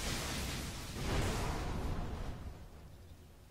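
Spell and combat sound effects crash and whoosh.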